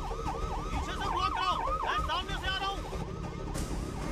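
A man speaks urgently into a police radio.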